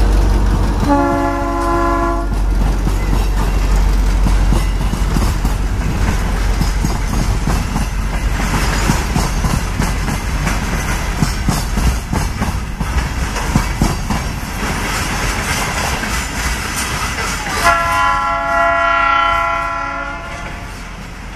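A train rumbles past close by, its wheels clattering over the rails.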